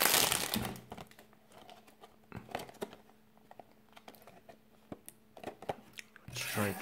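A cardboard box scrapes and taps softly as hands handle it.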